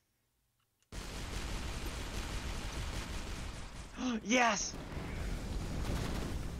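Game explosions boom and crackle.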